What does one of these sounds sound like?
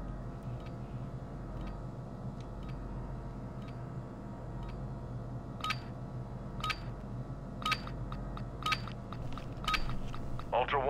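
A countdown timer beeps once each second.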